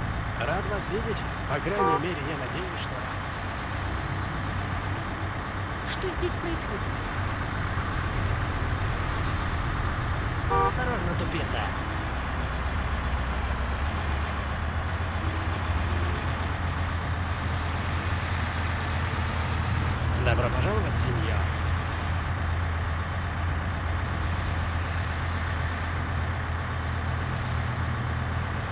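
A bus engine hums steadily as it drives along a road.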